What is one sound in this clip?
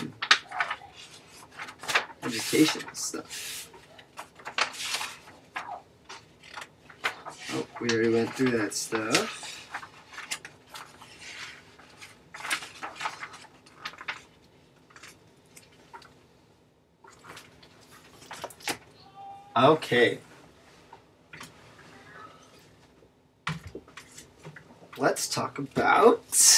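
Paper pages rustle and flip.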